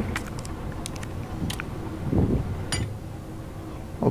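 A heavy metal gear clanks into place.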